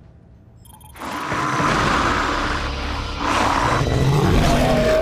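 Monsters growl and snarl loudly.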